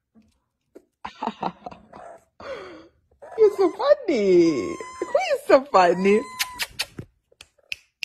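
A husky puppy whimpers and grunts softly.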